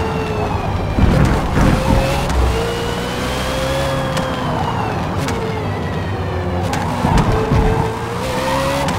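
Tyres screech through tight corners.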